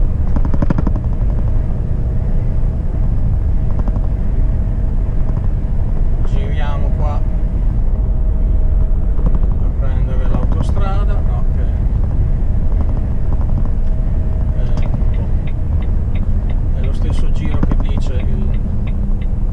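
A heavy vehicle's engine rumbles steadily while driving.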